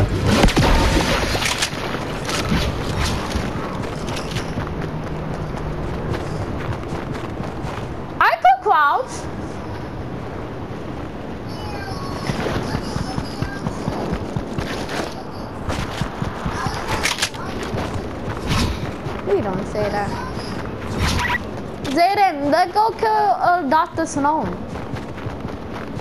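Footsteps run quickly over snow and grass.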